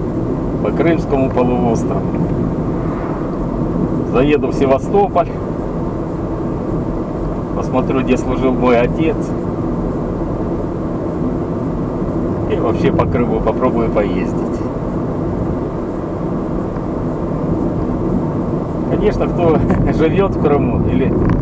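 A car's engine hums steadily from inside the car.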